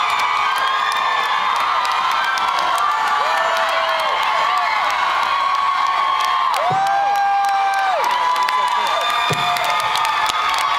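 A large crowd cheers, whistles and shouts loudly at a concert.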